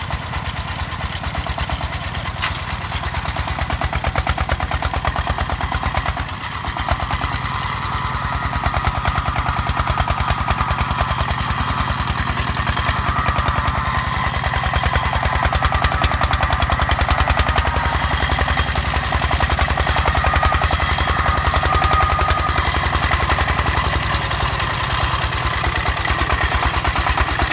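Tractor wheels churn through soft mud.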